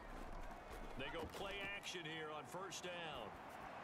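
Football players collide with dull thuds.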